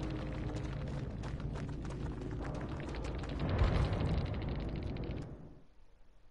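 Loud, tense game music plays and then cuts off.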